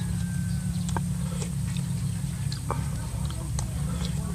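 A young man chews food noisily close by.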